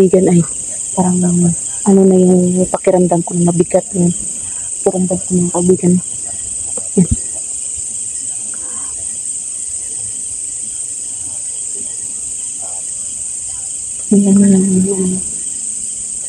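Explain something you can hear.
A young woman speaks quietly and close by, in short bursts.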